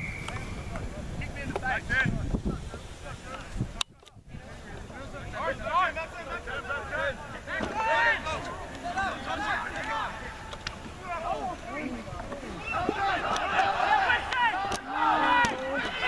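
A crowd of young spectators shouts and cheers outdoors.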